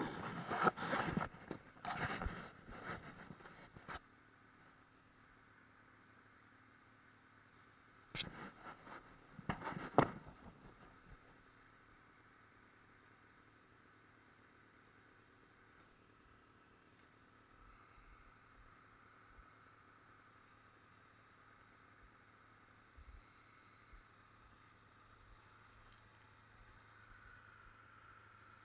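A snowmobile engine hums steadily nearby.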